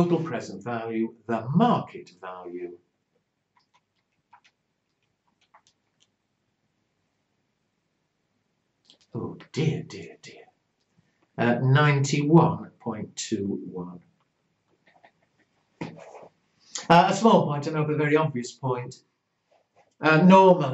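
An elderly man speaks calmly and clearly into a close microphone, explaining in pauses.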